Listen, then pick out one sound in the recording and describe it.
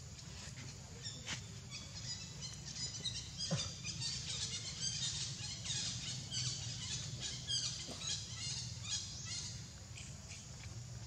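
Young monkeys squeak and chirp in high, quick calls.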